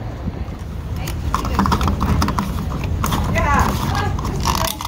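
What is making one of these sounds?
A fuel cap clicks and rattles as a hand twists it open.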